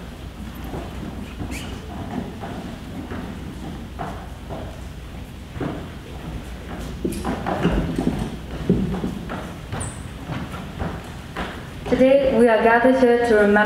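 Children shuffle and walk across a wooden stage.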